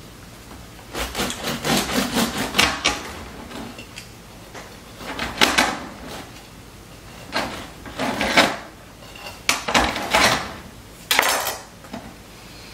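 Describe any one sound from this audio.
A knife saws through a crusty loaf of bread.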